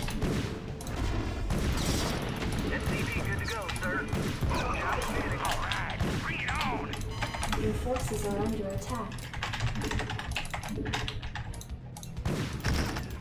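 Explosions and gunfire crackle in a video game.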